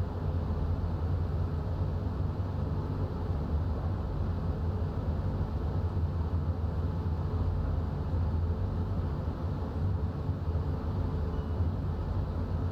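Rain patters on the windscreen.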